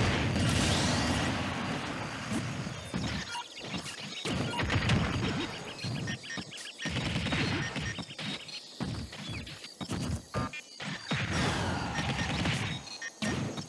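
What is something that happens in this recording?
A fighting game beam roars and whooshes.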